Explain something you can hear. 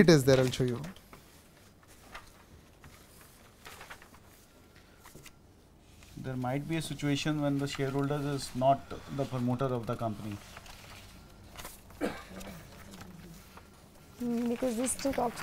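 A man speaks calmly into a microphone, reading out.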